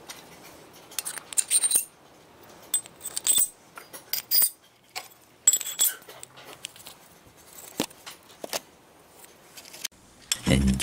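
Metal plates clink and knock against each other.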